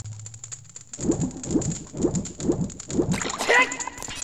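Water splashes in rhythmic strokes as a game character swims.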